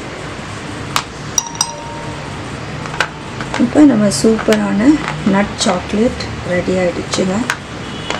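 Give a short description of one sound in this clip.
Chocolate pieces are tapped and slid on a plastic plate.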